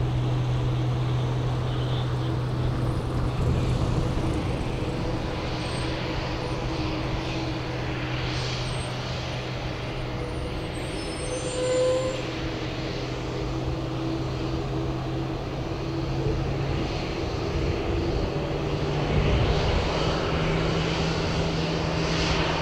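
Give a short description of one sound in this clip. A jet airliner's engines hum and whine steadily as it taxis nearby outdoors.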